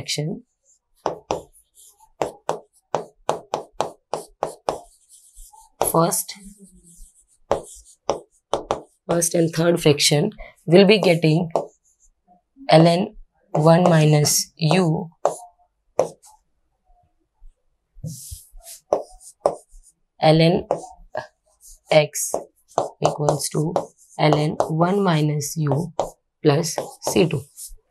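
A marker taps and squeaks against a writing board.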